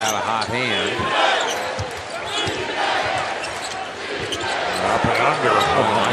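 A basketball bounces with dull thumps on the court.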